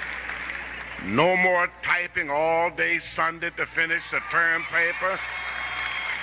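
An elderly man speaks slowly through a microphone and loudspeakers in a large echoing hall.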